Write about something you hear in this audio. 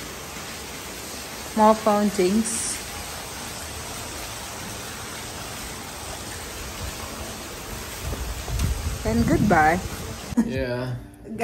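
Water from a small fountain splashes softly into a pool.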